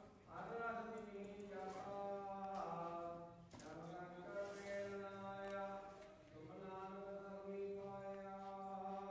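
A man sings a slow, drawn-out chant nearby.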